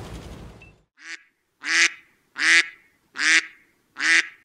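A duck quacks loudly several times.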